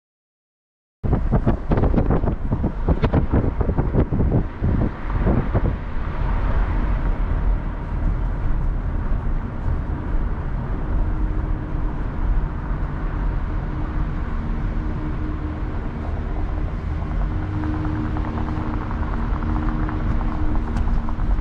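A car drives along a street with a steady low road rumble.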